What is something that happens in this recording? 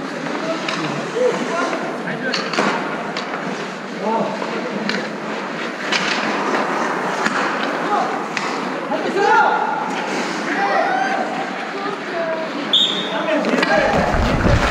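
Men call out in an echoing indoor rink.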